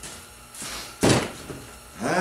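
A metal tool knocks on a steel table.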